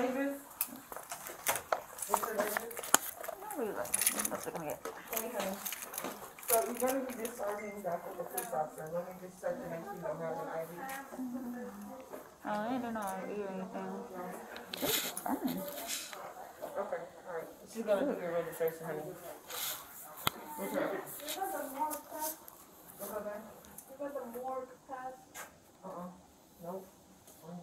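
A woman talks nearby in a calm voice.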